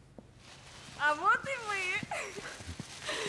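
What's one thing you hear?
A woman exclaims in delight.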